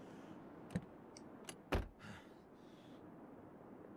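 A car door opens and thuds shut.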